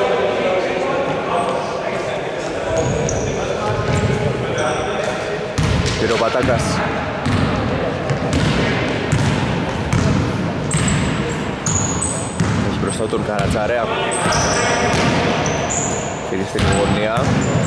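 Sneakers squeak sharply on a court in an echoing hall.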